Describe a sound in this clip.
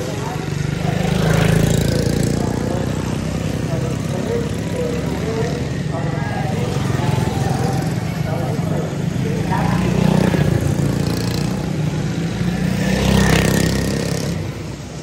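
Kart engines roar loudly as they pass close by.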